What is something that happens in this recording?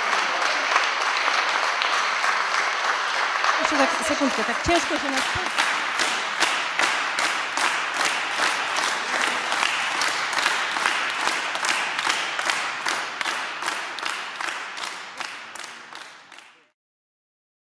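An audience applauds in an echoing hall, the clapping turning into slow rhythmic clapping in unison before fading out.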